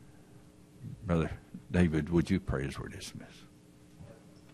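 An elderly man speaks slowly and solemnly into a microphone.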